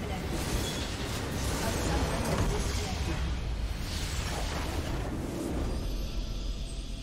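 A huge magical explosion roars and crackles.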